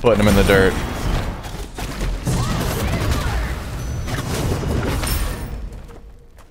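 Game sound effects of spells and impacts burst out.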